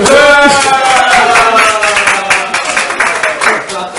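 Young men clap their hands.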